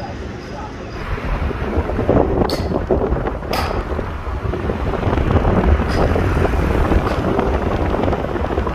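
A car engine hums as the car drives along a street.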